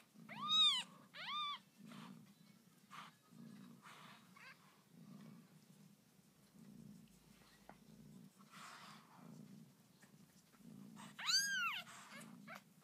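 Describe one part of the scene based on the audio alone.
Newborn puppies squeal in high, short cries.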